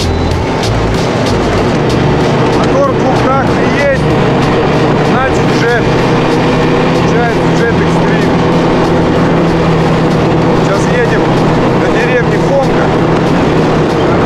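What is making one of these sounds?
A snowmobile engine drones steadily.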